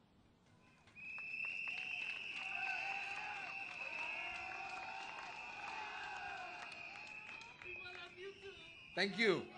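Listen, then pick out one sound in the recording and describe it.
A crowd claps and cheers.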